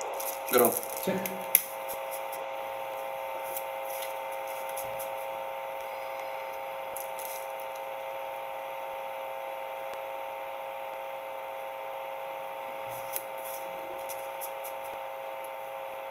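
Playing cards are shuffled and riffle softly.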